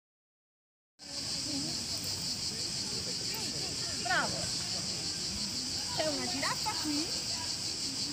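A woman reads a story aloud outdoors.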